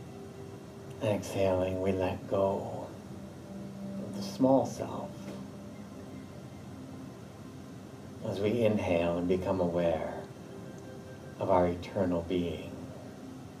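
A man speaks slowly and calmly through a close microphone, with long pauses.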